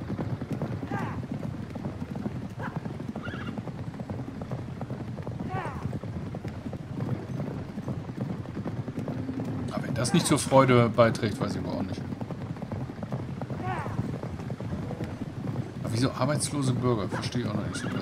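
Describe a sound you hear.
Chariots race past with hooves drumming on dirt.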